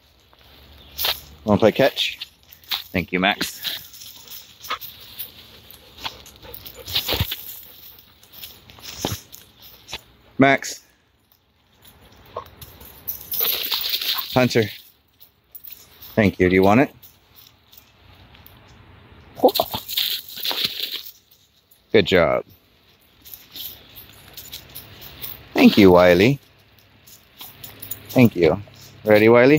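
Footsteps crunch on dry leaves and twigs outdoors.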